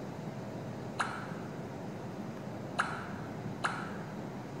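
Short game menu tones sound when buttons are tapped.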